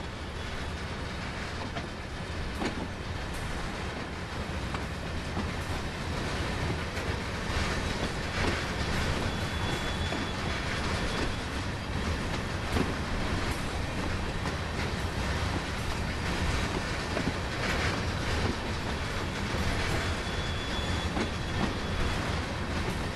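Wheels click and clatter over rail joints.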